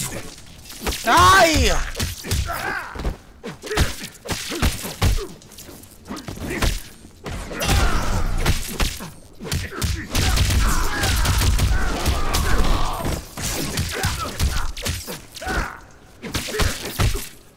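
Crackling energy blasts burst and sizzle.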